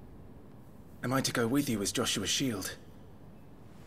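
A young man asks a question calmly.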